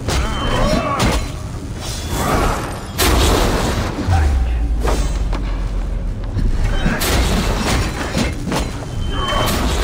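Electricity crackles and zaps sharply.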